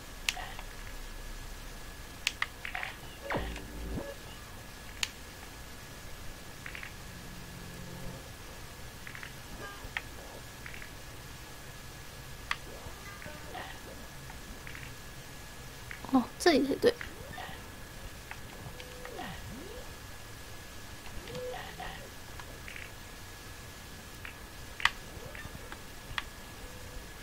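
Short electronic game sound effects blip and chime now and then.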